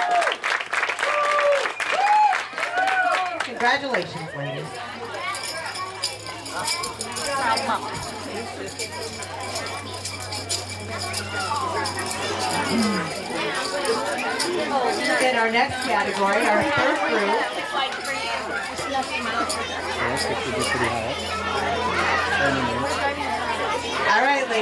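A crowd of children chatters.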